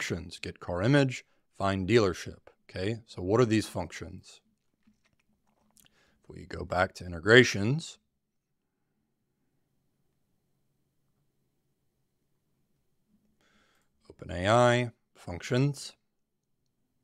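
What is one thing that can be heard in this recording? A man talks calmly and close to a microphone, in short bursts with pauses.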